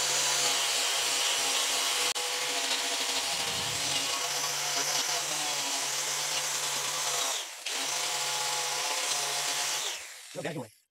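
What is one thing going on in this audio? An angle grinder whines steadily as it sands a metal surface.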